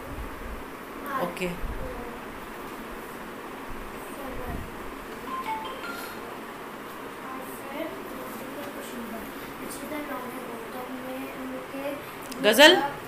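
A young girl talks quietly close by.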